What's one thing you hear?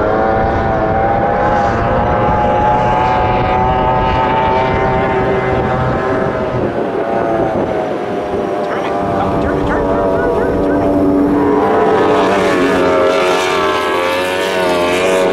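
A racing powerboat engine roars at high speed, rising and falling in pitch.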